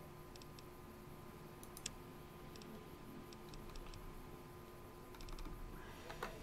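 Soft electronic clicks tick as menu items are selected.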